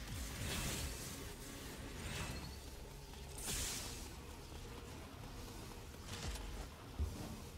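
Sword blows whoosh and slash in quick bursts.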